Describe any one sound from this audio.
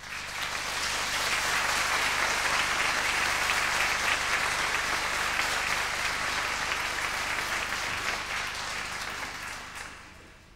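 A large audience applauds loudly in a hall, then the applause fades.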